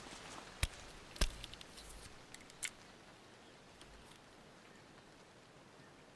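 Metal clicks and rattles as a gun is picked up.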